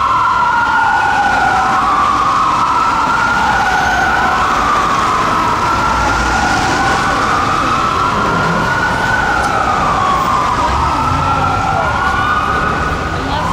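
A fire truck siren wails loudly, rising and falling.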